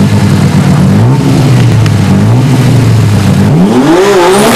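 An engine idles and revs in short bursts close by.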